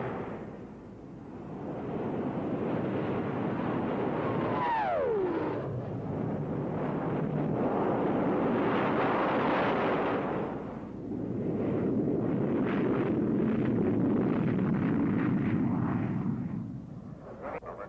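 A jet engine roars loudly as an aircraft flies low overhead.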